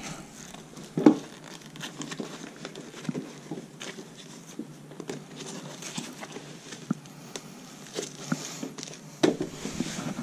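Fabric rustles and crinkles as hands handle a chair cushion cover.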